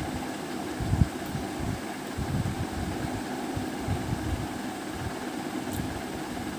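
Fingers squish and mash soft potato curry in a bowl, close to a clip-on microphone.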